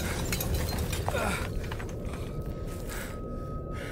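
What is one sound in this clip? A man groans in pain.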